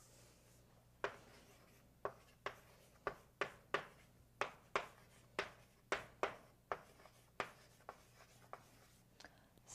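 Chalk taps and clicks against a blackboard.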